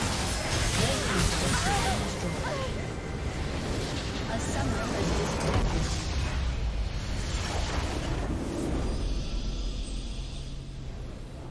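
Loud video game explosions and battle effects crash and boom.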